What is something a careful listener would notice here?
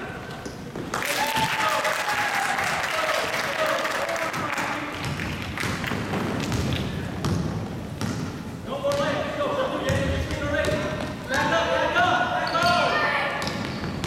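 Spectators cheer and shout from the sidelines.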